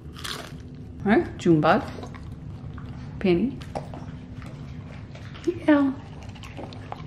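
A dog whines in short, high cries.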